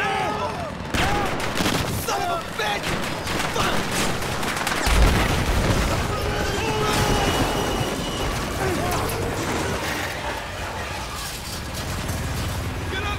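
A helicopter roars close by with thudding rotors.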